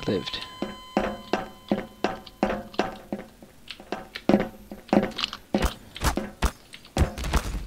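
Footsteps clank quickly on a metal grate floor.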